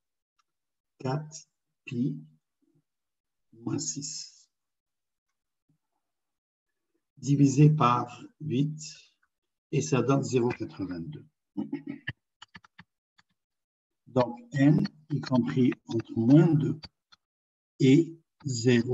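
A man explains calmly over an online call, in short bursts with pauses.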